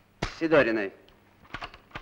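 A man speaks forcefully, close by.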